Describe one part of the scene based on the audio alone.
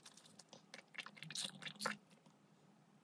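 A woman sips and swallows a drink.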